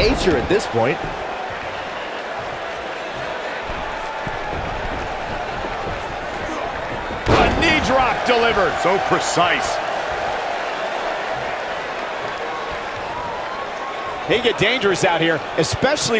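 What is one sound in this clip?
A crowd cheers and roars throughout in a large arena.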